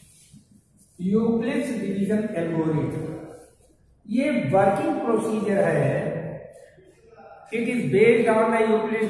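An elderly man speaks calmly through a clip-on microphone.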